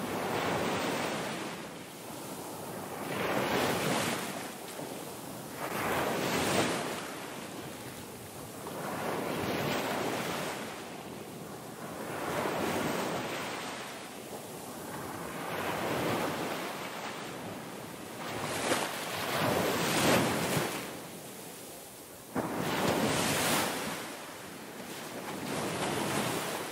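Small waves break and wash up onto a pebbly shore, surging and receding every few seconds.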